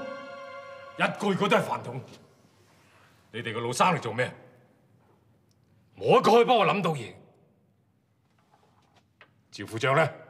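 A middle-aged man speaks sternly in short phrases.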